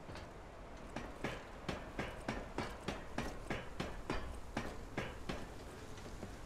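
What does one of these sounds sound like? Feet and hands clank rhythmically on a ladder while climbing.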